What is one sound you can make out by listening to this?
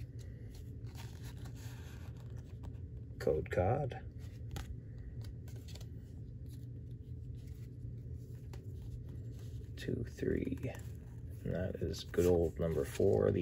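Playing cards slide and flick against each other.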